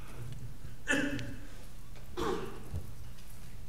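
A man speaks a few words briefly into a microphone.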